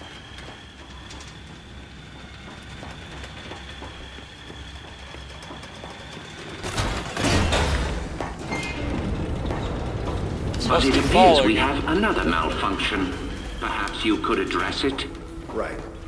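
Heavy boots clank on a metal walkway.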